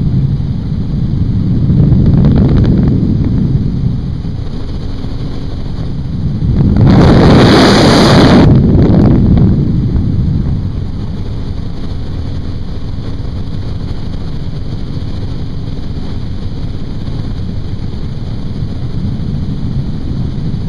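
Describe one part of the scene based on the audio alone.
A helicopter engine and rotor drone steadily up close.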